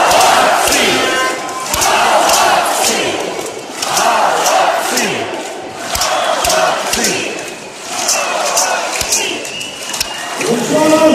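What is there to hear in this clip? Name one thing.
Spectators clap their hands in bursts.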